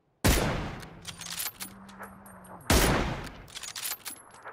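A rifle fires two loud, echoing gunshots.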